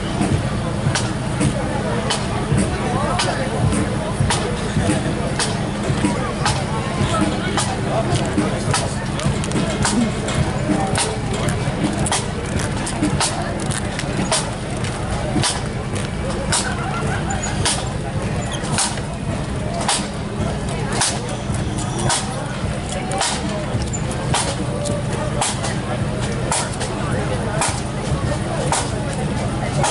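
A bass drum thumps in time with the march.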